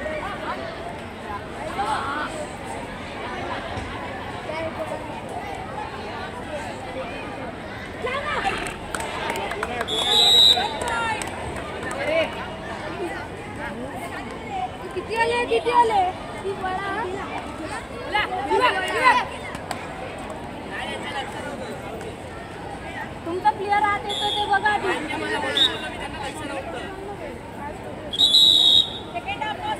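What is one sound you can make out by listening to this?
A boy chants rapidly.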